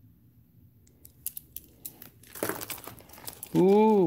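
Plastic packets rustle and clatter as a hand rummages through them.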